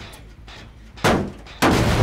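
Metal parts clank on a machine under repair.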